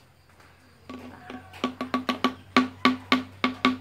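A spoon clinks rapidly against a glass bottle.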